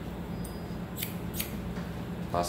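Scissors snip through hair.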